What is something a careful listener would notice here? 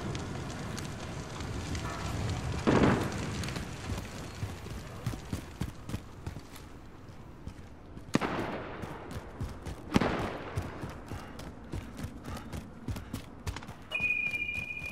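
Footsteps thud steadily on hard wet pavement.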